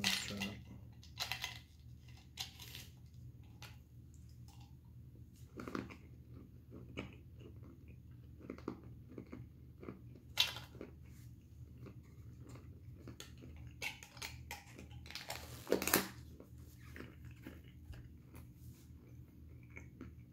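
A young man crunches and chews food.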